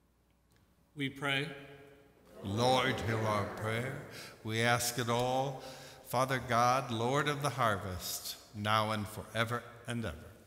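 A man speaks steadily through a microphone in a large echoing hall.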